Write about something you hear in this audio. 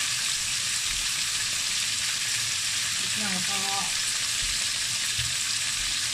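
Meat sizzles steadily in a hot frying pan.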